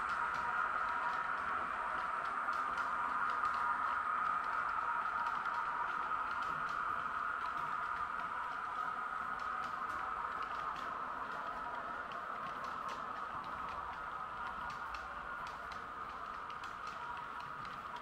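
Model train wheels click over rail joints.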